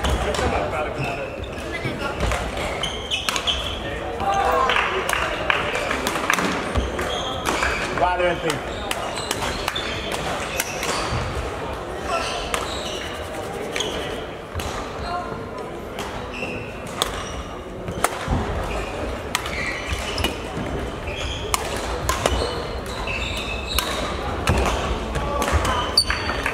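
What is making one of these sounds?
Shoes squeak and patter on a wooden floor.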